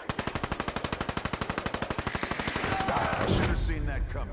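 A rapid-fire gun shoots in a fast burst.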